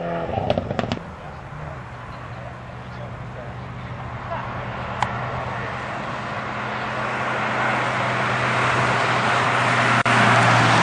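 A vintage car engine rumbles steadily as it drives closer.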